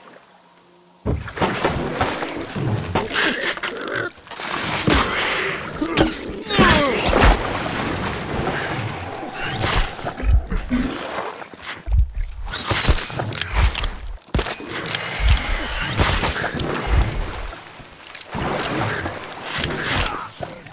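A creature screeches and growls close by.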